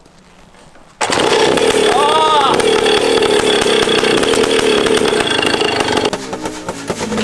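A small motorbike engine roars into life and revs loudly.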